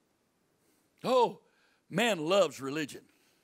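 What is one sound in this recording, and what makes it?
An elderly man speaks with emphasis through a microphone in a large room.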